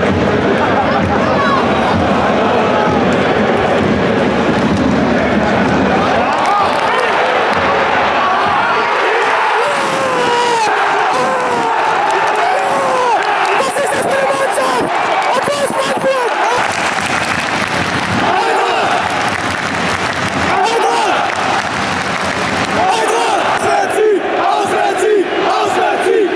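A large stadium crowd sings and chants loudly all around, echoing in the open air.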